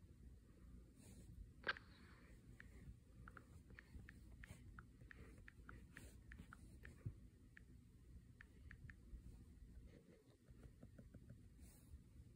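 Fingertips tap quickly on a touchscreen keyboard.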